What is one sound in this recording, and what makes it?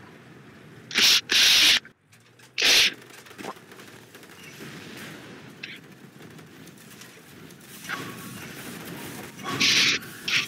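Explosions boom in bursts.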